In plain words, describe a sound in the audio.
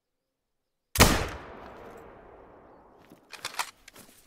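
A rifle fires a loud shot that echoes away through the woods.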